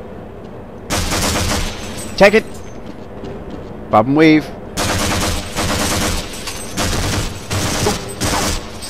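A submachine gun fires in loud rapid bursts.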